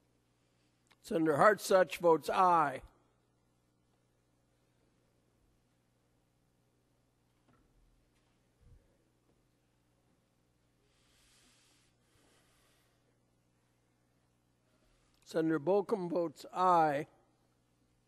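A man speaks briefly over a loudspeaker in a large echoing hall.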